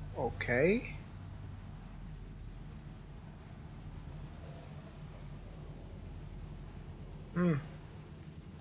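A low steady hum drones throughout.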